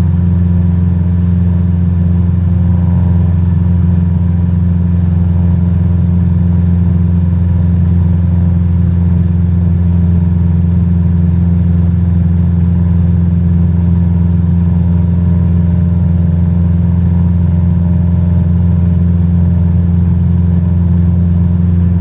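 A small propeller plane's engine drones steadily and loudly.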